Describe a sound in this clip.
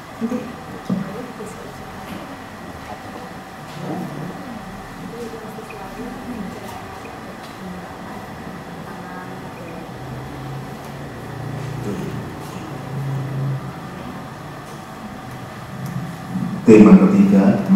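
Men and women murmur softly in a room.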